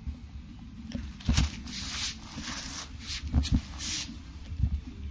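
Nylon fabric rustles and crinkles as it is handled.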